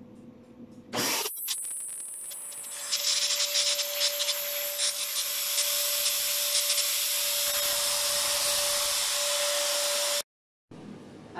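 A fogging machine runs with a loud, steady hiss and hum.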